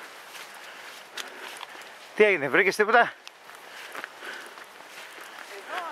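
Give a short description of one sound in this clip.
Footsteps scuff on a dirt trail.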